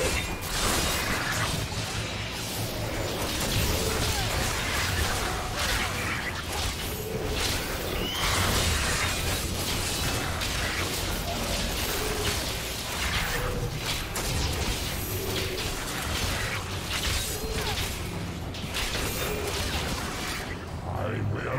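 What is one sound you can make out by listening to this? Clashing blows and spell blasts ring out in a fight.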